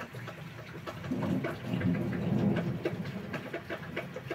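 Thunder rumbles low in the distance.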